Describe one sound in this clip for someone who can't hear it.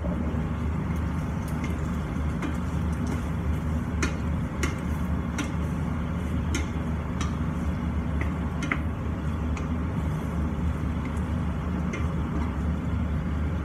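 A wooden spatula clacks against a metal pan.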